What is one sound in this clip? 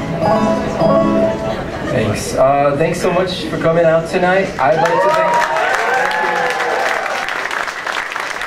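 A live band plays music.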